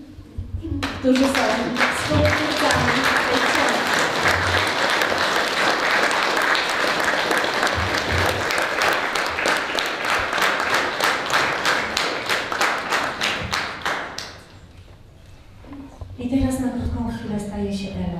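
A woman speaks calmly into a microphone in an echoing room.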